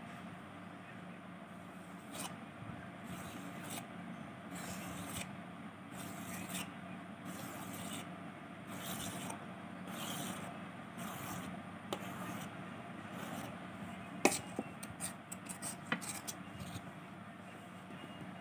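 A knife scrapes and taps against a metal plate while cutting soft dough.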